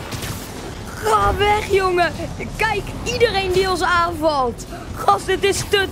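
A boy talks with animation into a headset microphone.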